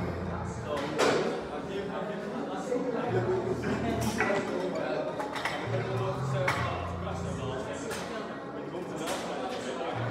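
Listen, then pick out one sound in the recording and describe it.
Weight plates on a barbell clank as it is lifted and set down.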